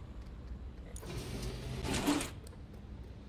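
A metal shutter door rattles as it rolls open.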